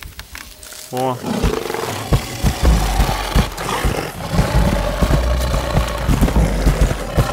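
A large creature growls and snorts loudly.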